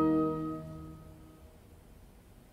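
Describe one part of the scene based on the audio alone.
A small orchestra holds a final chord that rings out and fades in a large hall.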